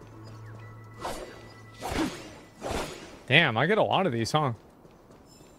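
A sword slashes with a sharp whoosh.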